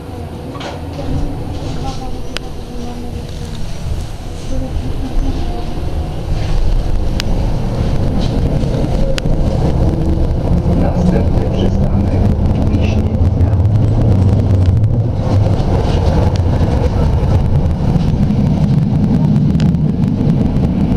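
An electric tram rolls along rails, heard from inside.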